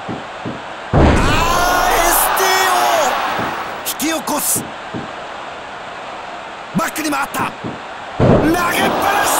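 A body slams hard onto a mat with a loud thud.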